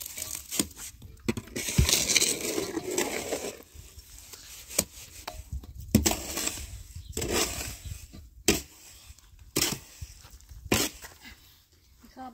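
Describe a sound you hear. Concrete blocks knock and scrape against each other.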